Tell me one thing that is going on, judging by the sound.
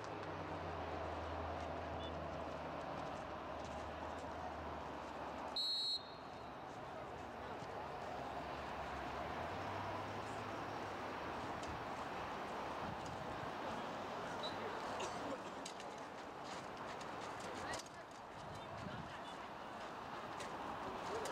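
Young players shout to each other across an open field outdoors.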